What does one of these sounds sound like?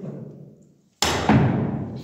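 A cue strikes a billiard ball.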